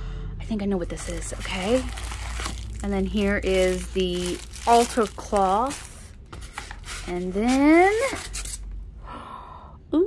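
Cardboard flaps rustle as a box is handled.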